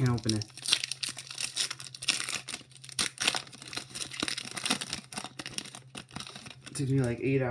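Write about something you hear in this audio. A foil wrapper crinkles and tears as it is ripped open.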